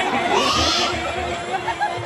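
A woman sings through a microphone over a loudspeaker.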